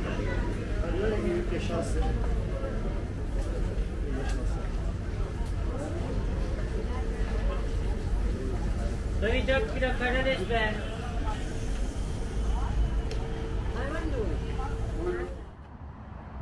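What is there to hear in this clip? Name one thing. A market crowd chatters in the background.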